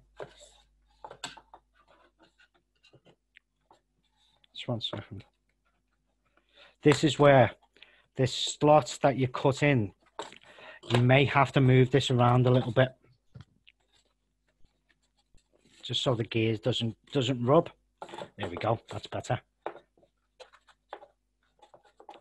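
Cardboard pieces tap and scrape softly as they are handled.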